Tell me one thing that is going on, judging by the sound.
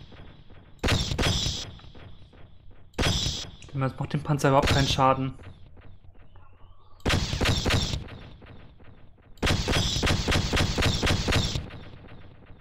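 A weapon fires in short, rapid bursts of shots.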